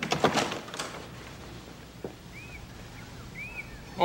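A wooden door opens.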